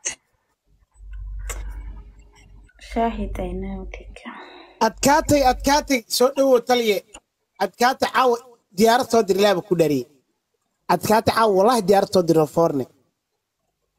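A young man speaks with animation into a microphone over an online call.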